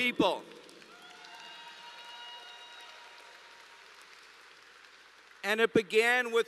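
A man speaks loudly and with emphasis into a microphone in a large echoing hall.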